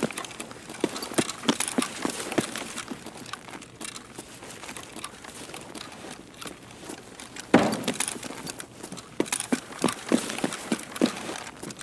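Footsteps crunch over gritty ground at a steady walking pace.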